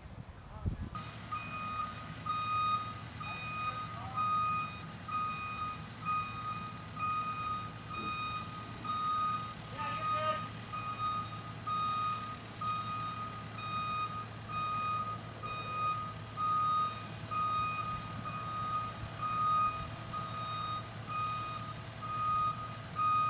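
A heavy machine's diesel engine rumbles steadily.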